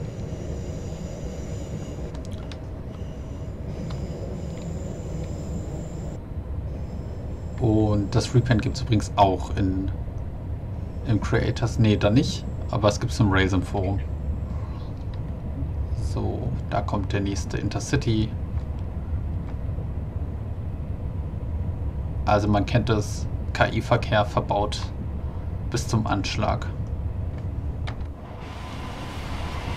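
An electric multiple-unit train rumbles along rails, heard from inside the cab.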